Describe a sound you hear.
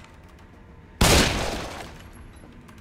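A gunshot bangs loudly and echoes.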